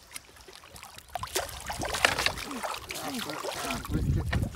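A fish splashes and thrashes in shallow water.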